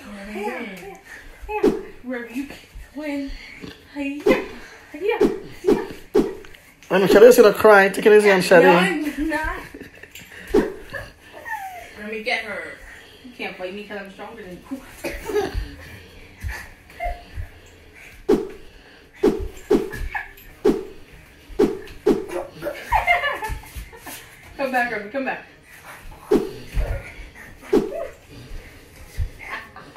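A young woman chants and laughs close by.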